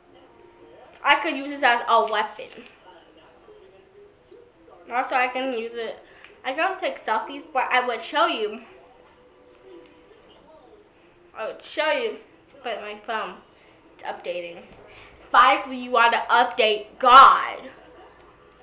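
A young girl talks close by, in short bursts.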